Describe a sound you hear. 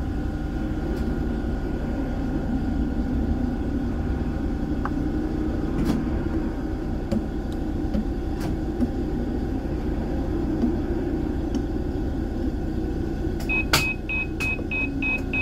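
Tram wheels click over rail joints now and then.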